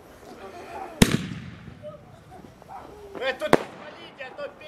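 Fireworks burst with loud bangs outdoors.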